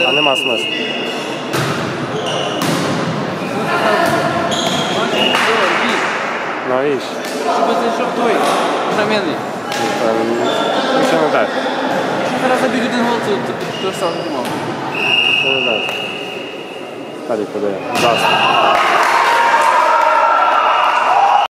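Young people shout and cheer in a large echoing hall.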